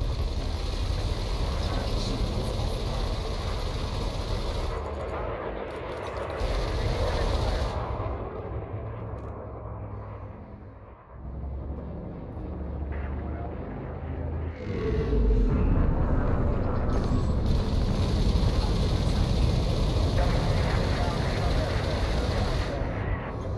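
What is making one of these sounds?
Laser weapons fire in rapid, buzzing bursts.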